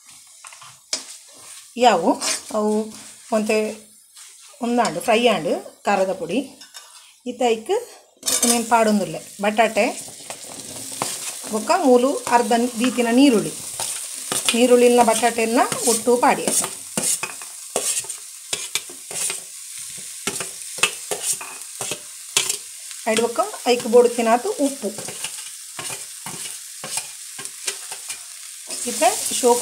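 A metal spoon scrapes and taps against a pan.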